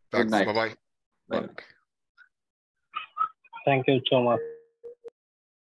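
A man speaks through an online call, in short bursts with pauses.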